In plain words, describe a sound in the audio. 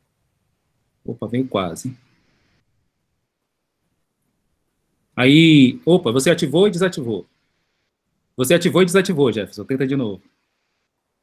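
A man speaks calmly in short bursts over an online call.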